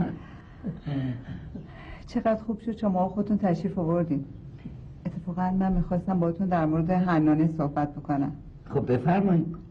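A middle-aged woman talks calmly and warmly nearby.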